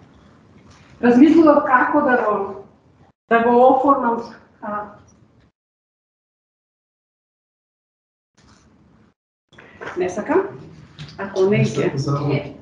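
A woman speaks calmly through an online call, with pauses.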